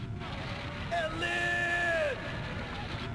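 A young woman cries out sharply.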